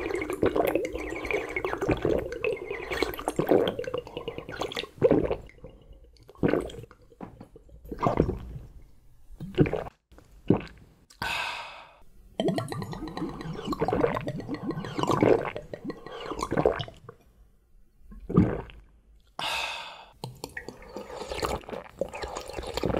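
A young man slurps and gulps a drink up close.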